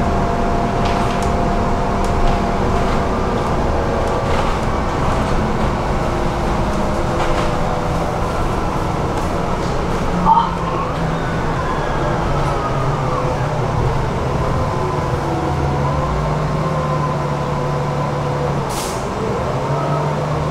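A tram's motor whines, changing pitch as it speeds up and slows.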